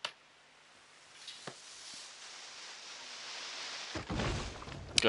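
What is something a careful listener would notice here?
A tree creaks and crashes down through branches.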